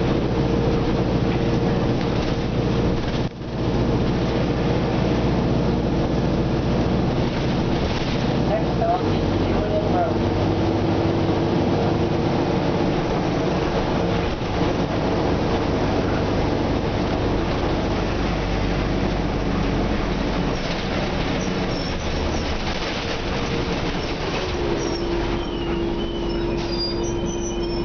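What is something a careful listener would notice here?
A bus rattles and shakes over the road.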